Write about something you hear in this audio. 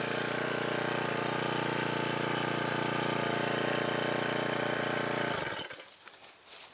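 A small petrol engine drones loudly and steadily, then cuts out.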